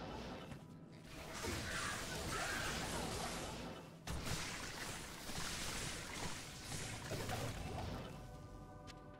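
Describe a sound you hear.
Spell blasts crash and rumble loudly.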